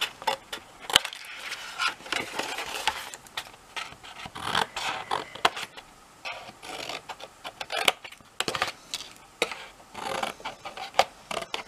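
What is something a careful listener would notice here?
Scissors snip through stiff card.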